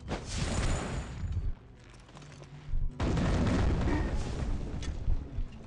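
Fiery blasts roar and crackle.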